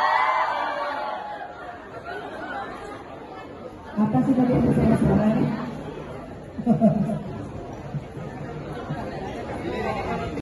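A crowd of people chatter nearby.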